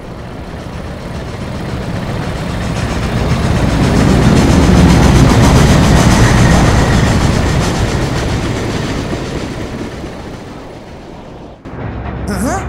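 Wind rushes past loudly, swelling and then slowly fading.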